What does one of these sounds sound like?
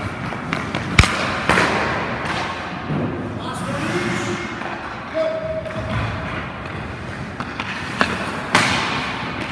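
A hockey puck smacks against a goalie's pads.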